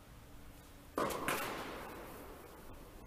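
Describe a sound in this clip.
A tennis ball is struck hard with a racket, echoing through a large indoor hall.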